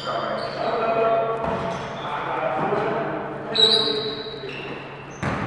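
Sneakers squeak on a hard floor in a large echoing gym.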